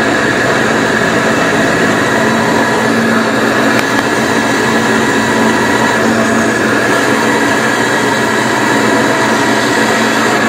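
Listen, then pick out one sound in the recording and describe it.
A band saw blade cuts through wood with a rasping buzz.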